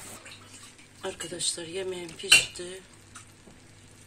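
A wooden spoon scrapes and knocks against a pot of stew.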